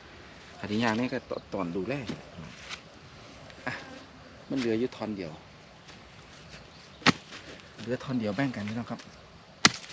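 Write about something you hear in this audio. A man talks nearby in short, lively bursts.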